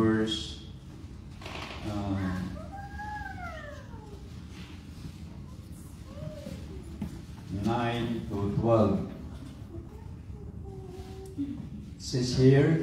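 A man speaks through a microphone and loudspeakers in an echoing hall, with pauses.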